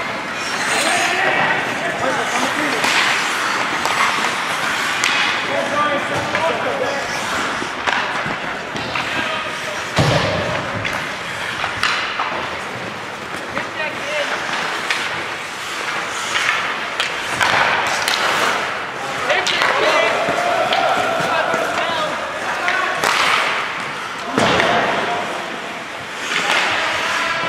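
Spectators shout and cheer in a large echoing rink.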